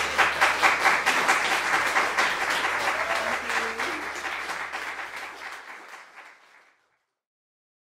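An audience claps and the applause slowly fades away.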